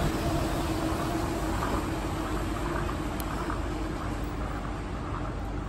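A monorail train hums overhead as it passes and moves away, fading slowly.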